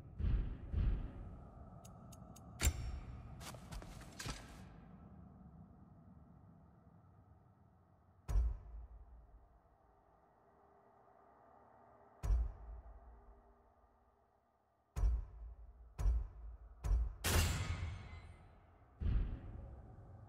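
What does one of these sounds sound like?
Short soft clicks sound as menu choices change.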